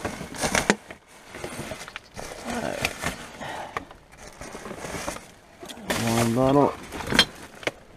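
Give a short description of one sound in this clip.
Plastic bags and rubbish rustle and crinkle as they are handled.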